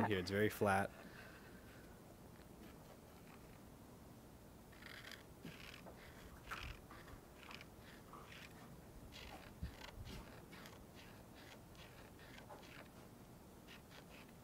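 A marker scratches and squeaks against paper in short strokes.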